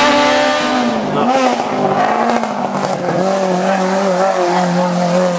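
A small hatchback rally car revs hard as it races past.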